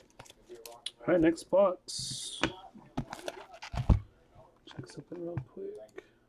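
A plastic-wrapped card pack crinkles and rustles in hands.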